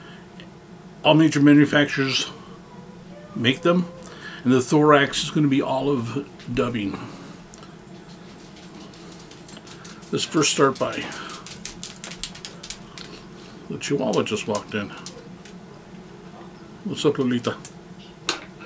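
A man talks calmly and close to a microphone, in short phrases with pauses.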